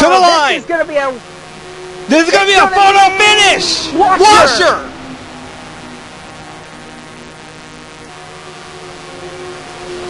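Race car engines roar steadily as the cars speed around a track.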